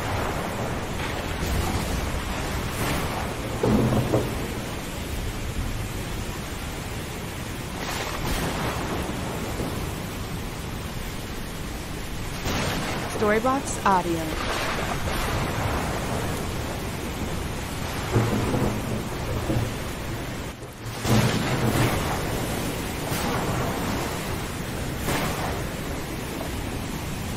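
Waves churn and wash across a stormy sea.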